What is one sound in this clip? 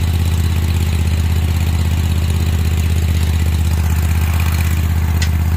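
A small engine idles steadily close by.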